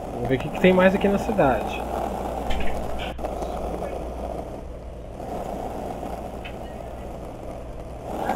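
Skateboard wheels roll steadily over smooth pavement.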